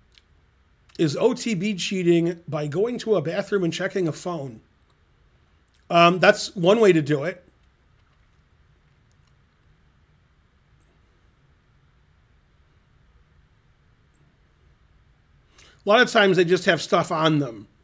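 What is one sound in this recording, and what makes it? A middle-aged man speaks calmly and with animation into a close microphone, with long pauses.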